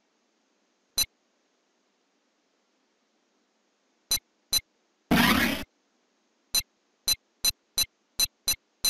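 Short electronic beeps sound one after another.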